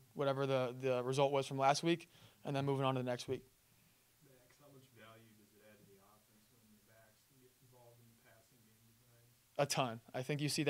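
A young man speaks calmly into a microphone close by.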